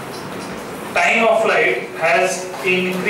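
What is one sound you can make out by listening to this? A man speaks clearly and steadily nearby.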